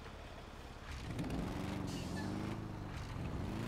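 A motorcycle engine rumbles and revs.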